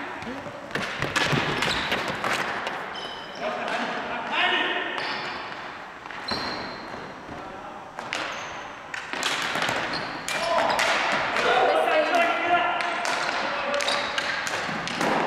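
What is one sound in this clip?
Players' shoes squeak on a hardwood gym floor.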